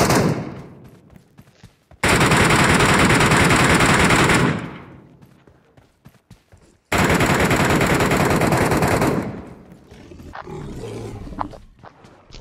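Footsteps run quickly over ground and wooden floors.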